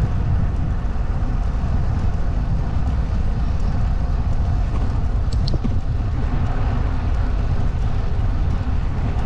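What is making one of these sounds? Strong wind buffets the microphone with a steady low rumble.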